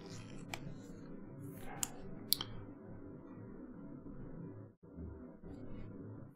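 Trading cards slide and click softly between fingers.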